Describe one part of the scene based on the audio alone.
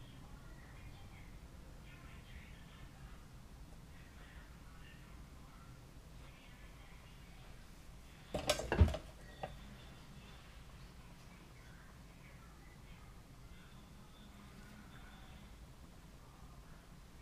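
A woman speaks softly and calmly close by.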